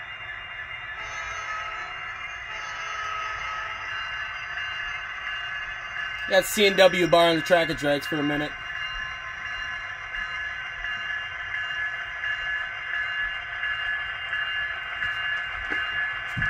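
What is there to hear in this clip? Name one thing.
A model train rumbles and whirs steadily along its track.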